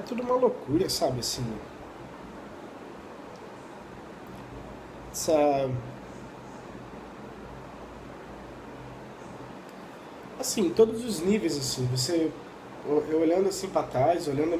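A young man talks casually, close to the microphone, with pauses.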